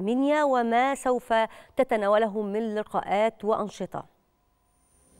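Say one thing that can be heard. A woman speaks clearly and steadily into a microphone.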